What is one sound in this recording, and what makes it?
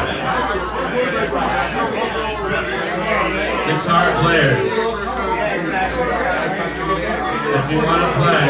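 A band plays loud music with drums and guitar.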